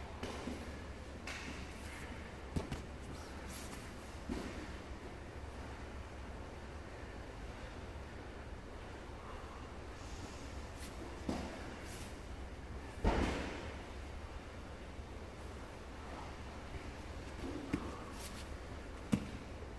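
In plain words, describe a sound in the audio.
Grappling bodies and cloth rustle and thump on a mat.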